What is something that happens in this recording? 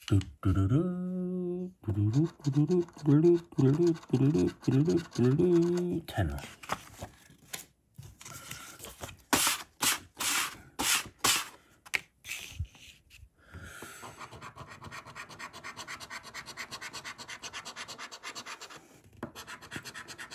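A coin scrapes rapidly across a scratch card.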